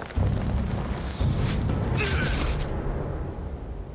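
A sword slashes with a heavy blow.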